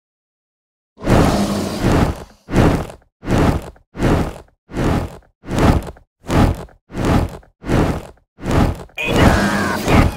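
A game dragon roars in loud, repeated bursts.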